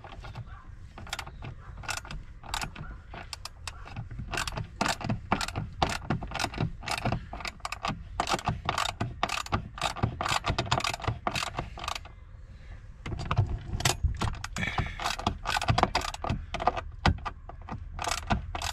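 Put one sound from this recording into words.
Metal parts click and rattle quickly as a screw is turned by hand.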